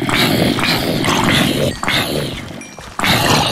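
Blocks crunch as they break in a video game.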